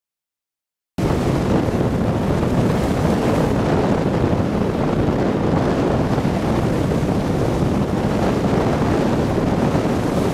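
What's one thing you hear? Small waves break and wash up on a sandy beach.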